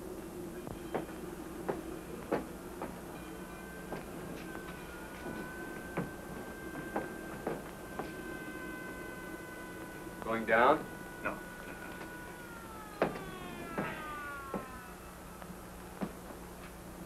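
Footsteps clack on a hard deck.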